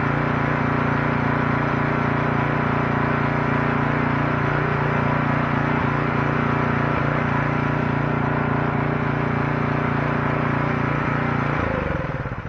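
A small tractor's diesel engine idles loudly and steadily close by, then shuts off and sputters to a stop.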